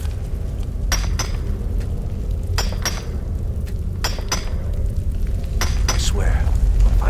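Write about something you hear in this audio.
A pickaxe strikes rock in repeated sharp, ringing blows.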